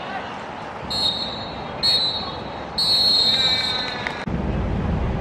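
A referee blows sharp blasts on a whistle.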